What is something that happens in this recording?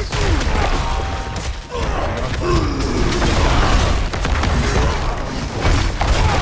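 Game combat effects crash and whoosh.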